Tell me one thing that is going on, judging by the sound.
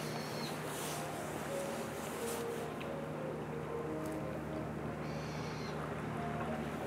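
Gentle water laps against rocks along the shore.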